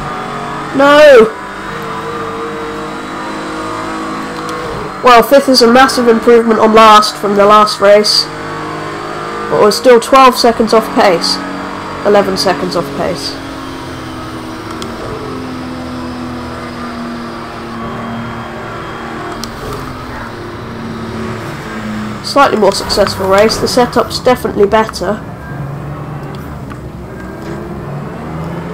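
A racing car engine drones steadily, its pitch shifting as it speeds up and slows down.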